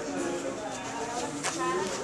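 Fabric rustles as a phone is rubbed against cloth.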